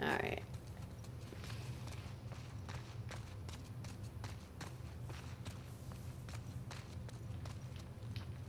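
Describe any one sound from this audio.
Quick footsteps rustle through dry grass.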